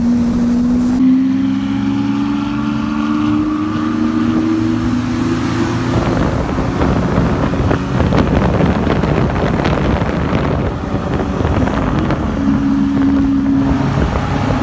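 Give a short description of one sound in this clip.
A sports car engine revs loudly and roars nearby.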